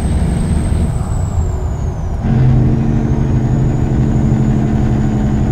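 A heavy diesel truck engine drones as the truck pulls along the road.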